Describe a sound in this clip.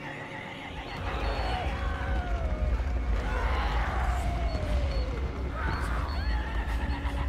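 Creatures shriek and screech.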